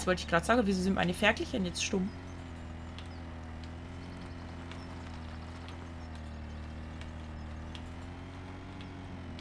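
A small tractor engine hums steadily as it drives slowly.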